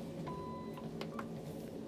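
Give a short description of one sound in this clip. A lift button beeps as it is pressed.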